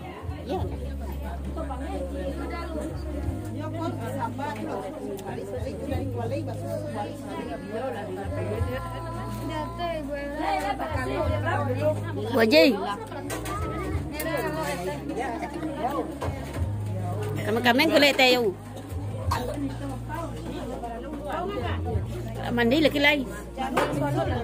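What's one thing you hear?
Several women chat and talk close by.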